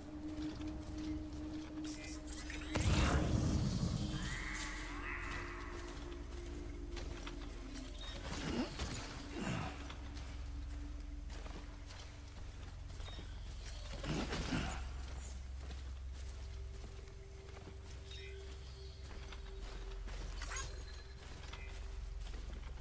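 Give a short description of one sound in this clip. Footsteps tread over soft grass.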